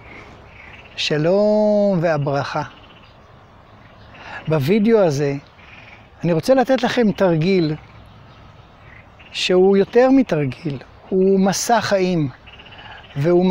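A man speaks calmly and slowly, with pauses, close to a microphone.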